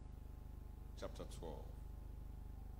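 A man speaks a few quiet words through a microphone.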